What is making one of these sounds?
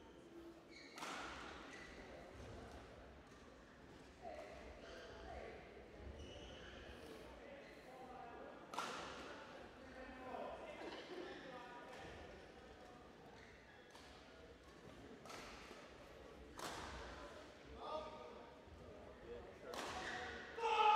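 Shuttlecocks are struck sharply with rackets.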